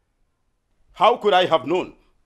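An elderly man speaks calmly.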